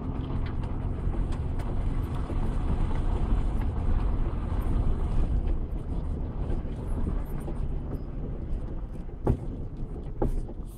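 A car engine rumbles steadily from inside the cab.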